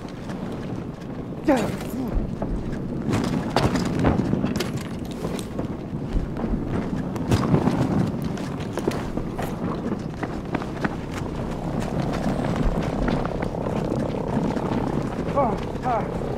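A forest fire roars and crackles.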